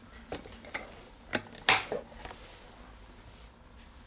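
A plastic mount knocks against a hard surface.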